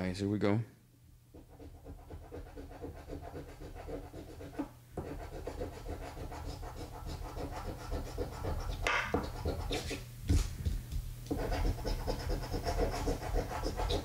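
A coin-like scratcher scrapes the coating off a lottery scratch-off ticket.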